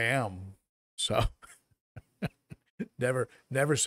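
A middle-aged man chuckles softly.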